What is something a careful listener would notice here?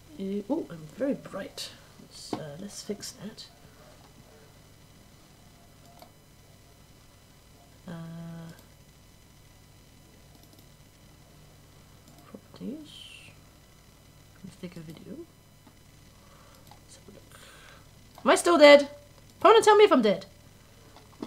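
A young woman talks casually into a microphone, in short bursts with pauses.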